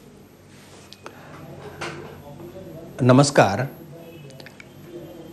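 An elderly man speaks calmly over a remote link.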